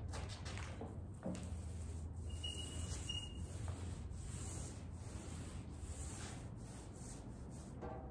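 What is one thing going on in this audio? A broom sweeps across a concrete floor.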